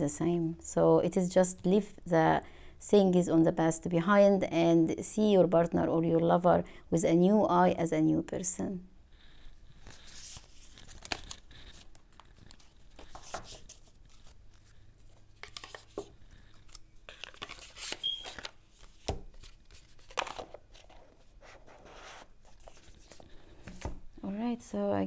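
Playing cards rustle and tap softly as they are handled.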